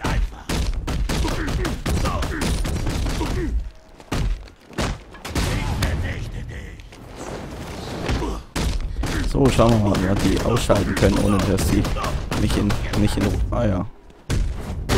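Heavy punches and kicks land with dull thuds.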